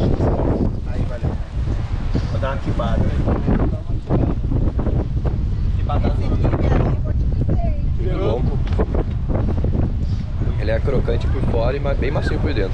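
Wind blows against a microphone outdoors.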